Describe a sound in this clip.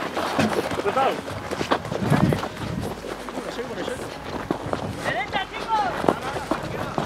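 Footsteps crunch and rustle through dry brush outdoors.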